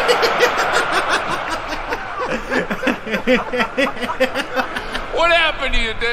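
A young man laughs heartily close by.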